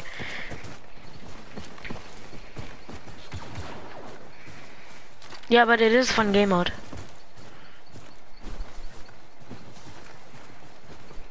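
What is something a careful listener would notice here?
Footsteps crunch softly over a leafy forest floor.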